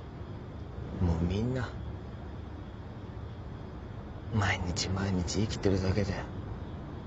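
A young man speaks softly and slowly, close by.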